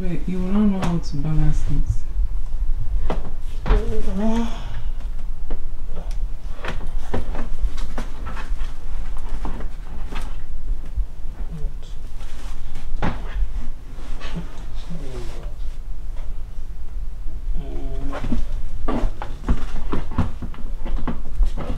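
Plastic parts of a stroller click and clunk as a car seat is fitted onto it.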